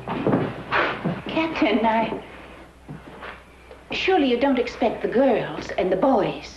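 An elderly woman speaks up sharply nearby.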